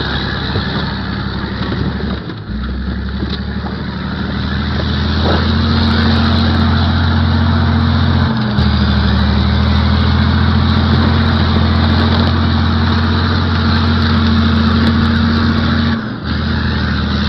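A heavy diesel engine roars loudly close by, its pitch shifting as it works.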